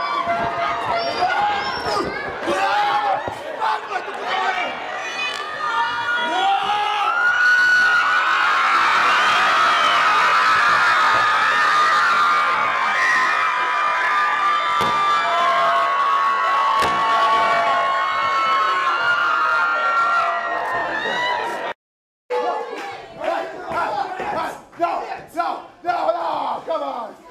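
A large crowd shouts and cheers loudly.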